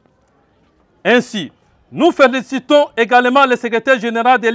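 A man reads out a statement into a microphone, close by.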